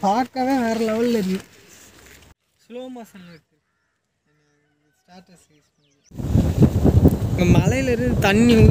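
A young man speaks close by outdoors.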